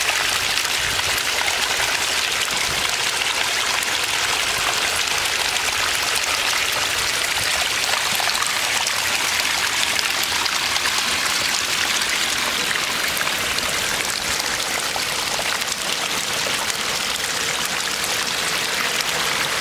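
Water trickles and splashes steadily over rocks close by.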